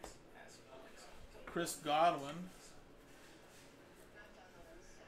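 Cards slide and rustle between fingers.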